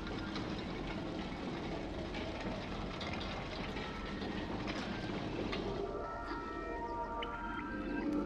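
A loaded cart rolls and rattles over a hard floor.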